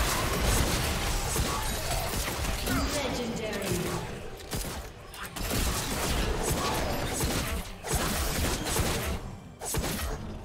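Weapons clash with sharp hits.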